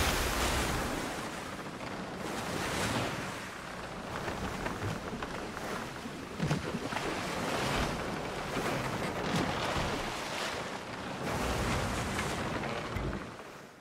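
A sail flaps and ruffles in strong wind.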